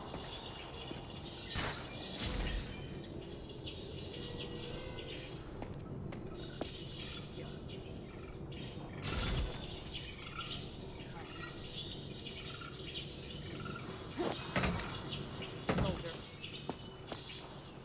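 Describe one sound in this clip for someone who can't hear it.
Heavy footsteps thud and clang on metal decking.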